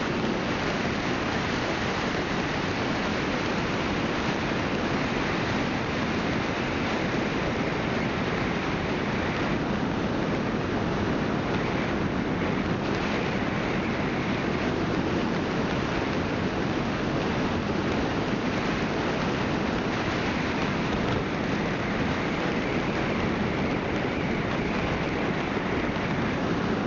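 Wind rushes loudly past a moving vehicle.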